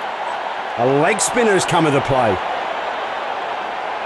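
A large crowd murmurs steadily in a stadium.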